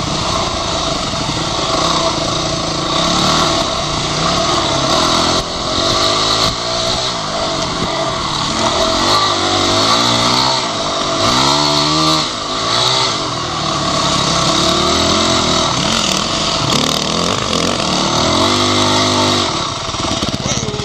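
A dirt bike engine close by revs up and down as it rides.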